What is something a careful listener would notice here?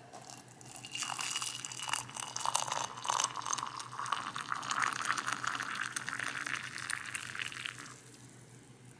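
Hot water pours into a mug with a splashing gurgle that rises in pitch as it fills.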